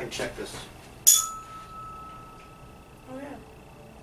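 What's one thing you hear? A tuning fork is struck and rings with a steady high tone that slowly fades.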